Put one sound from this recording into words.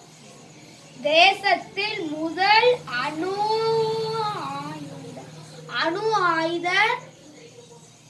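A young boy reads aloud close by, in a high, sing-song voice.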